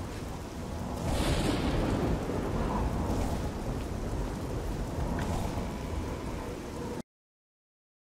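A magic spell whooshes and shimmers.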